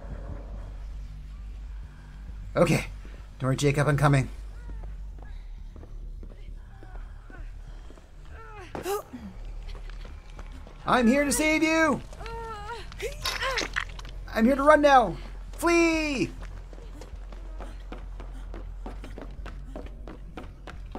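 Quick footsteps run over wooden boards and dirt.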